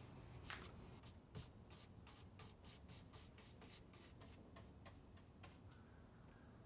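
A brush strokes and swishes against wood.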